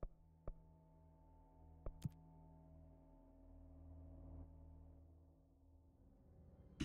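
A low, dark ambient drone hums steadily.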